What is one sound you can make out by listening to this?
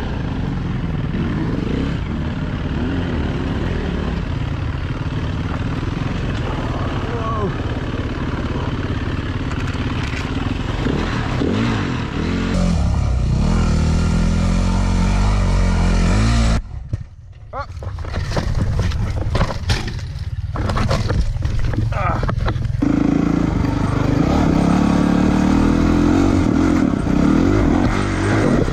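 A dirt bike engine revs loudly and rises and falls in pitch.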